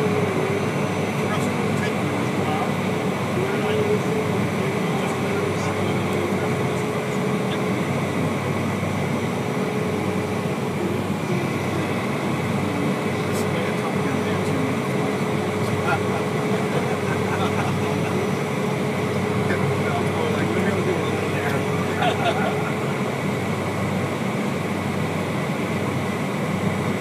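Wheels rumble over the pavement as the plane taxis.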